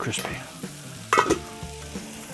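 A metal lid clanks down onto a griddle.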